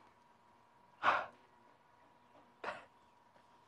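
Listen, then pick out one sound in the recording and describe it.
A woman sobs softly, close by.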